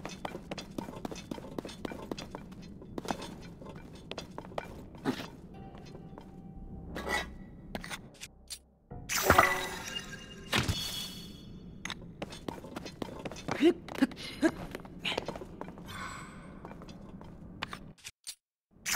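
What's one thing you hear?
Footsteps scrape and tap on rock.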